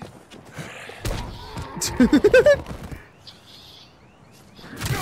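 A heavy blunt weapon thuds against a body.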